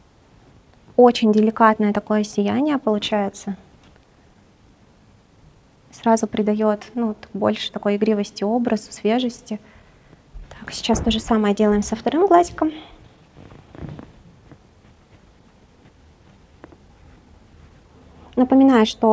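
A woman speaks calmly and clearly into a close microphone, explaining in bursts.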